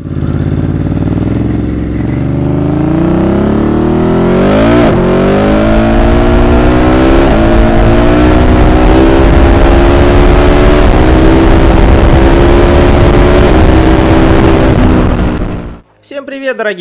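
A motorcycle engine roars and revs up as the bike accelerates, shifting gears.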